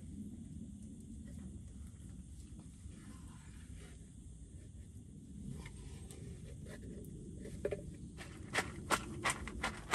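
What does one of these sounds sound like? Wet food plops out of a tin into a metal bowl.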